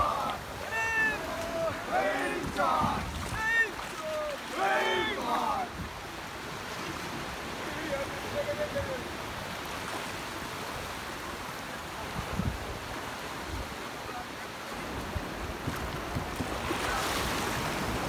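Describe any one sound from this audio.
Small waves wash over the shore.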